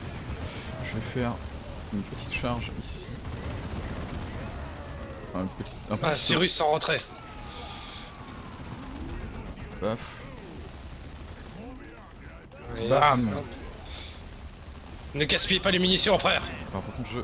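Guns fire in a distant battle.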